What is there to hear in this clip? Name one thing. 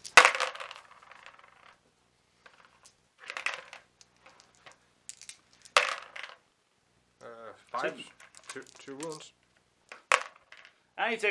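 Dice clatter and rattle around in a plastic bowl.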